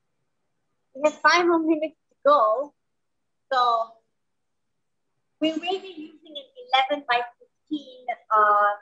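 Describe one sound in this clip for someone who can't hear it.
A woman talks with animation through an online call.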